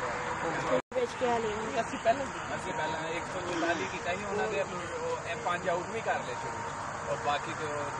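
Men talk at a distance outdoors.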